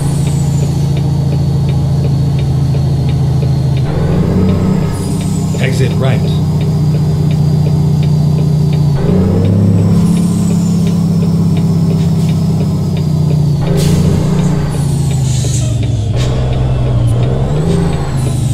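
Tyres roll on a highway.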